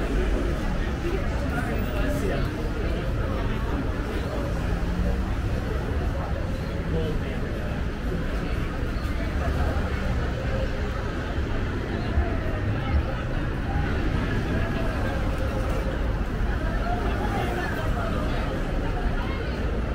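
Men and women chat nearby in a murmur of voices.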